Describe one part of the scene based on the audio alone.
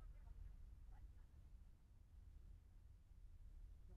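A car engine hums as a car drives off slowly.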